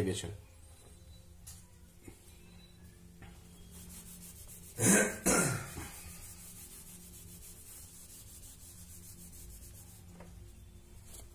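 A cloth rubs across a whiteboard.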